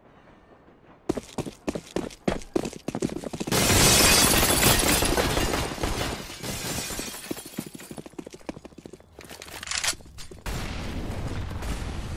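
Footsteps run quickly over a hard floor.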